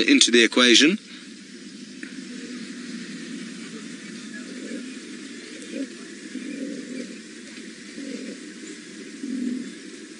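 Cheetahs growl low while feeding.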